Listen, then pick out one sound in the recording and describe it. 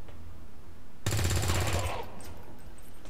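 A rifle fires a rapid, loud burst.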